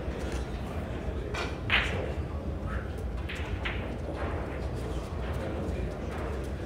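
A small crowd murmurs quietly in the background.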